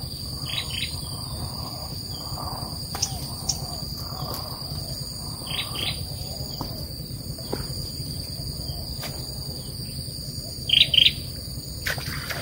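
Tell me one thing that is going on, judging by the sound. Leafy branches rustle and crackle as a man pulls through brush.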